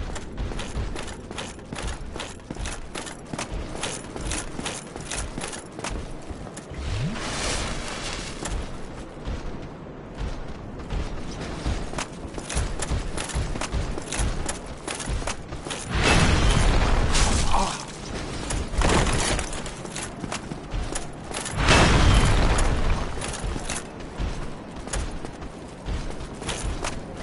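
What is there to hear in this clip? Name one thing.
Armoured footsteps clank steadily on stone.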